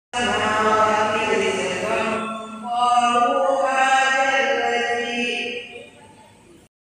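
A woman chants melodiously into a microphone, her voice carried through loudspeakers in a reverberant room.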